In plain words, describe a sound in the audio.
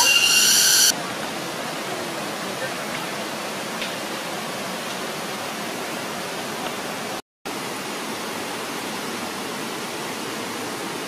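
A stream rushes over rocks nearby.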